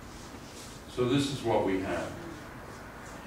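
An elderly man speaks calmly, as if lecturing.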